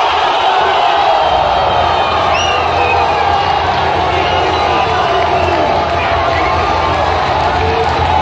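Young men shout and cheer close by.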